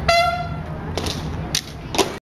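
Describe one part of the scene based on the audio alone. A marching band beats drums in loud, sharp strokes outdoors.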